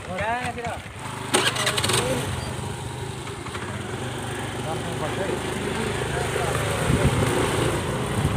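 A motor scooter engine hums steadily.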